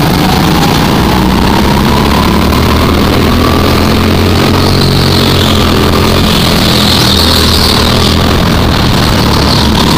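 Other go-kart engines whine ahead.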